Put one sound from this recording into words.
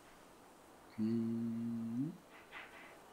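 A small handheld device buzzes briefly with a low hum.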